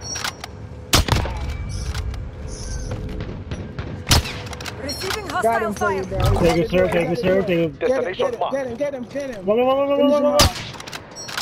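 Sharp rifle shots crack out one at a time.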